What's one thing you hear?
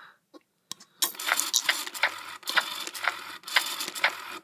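A baby doll makes loud, rhythmic sucking sounds on a bottle.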